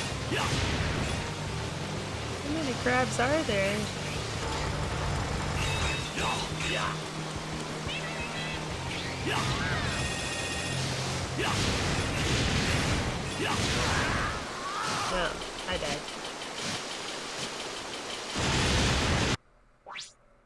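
Sword slashes and laser shots zap in quick bursts.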